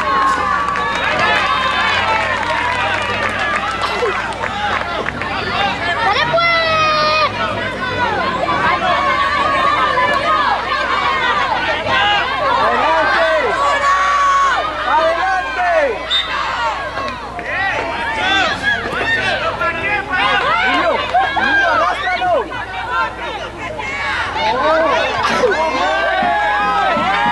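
A crowd of spectators shouts and cheers outdoors.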